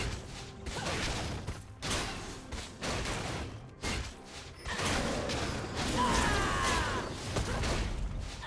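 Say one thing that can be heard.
Game spells whoosh and crackle during a fight.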